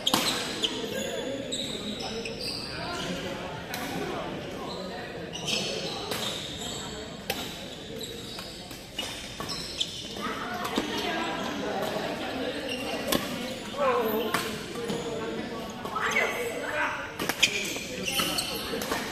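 Shuttlecocks are struck with rackets, sharp hits echoing in a large hall.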